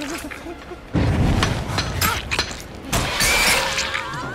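A blade swings and strikes with a heavy impact.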